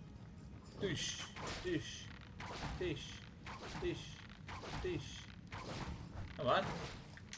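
Arrows are loosed from a bow with sharp twangs.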